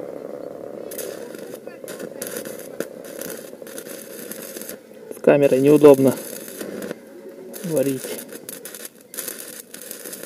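An arc welder crackles and sizzles in short bursts.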